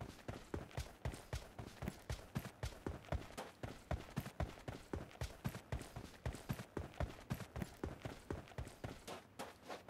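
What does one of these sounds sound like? Quick footsteps run over dry ground.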